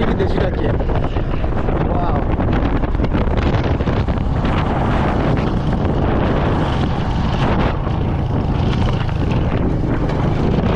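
Wind rushes loudly past.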